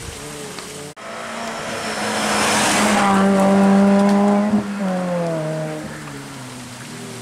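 A second rally car engine roars close by, revving hard and then fading into the distance.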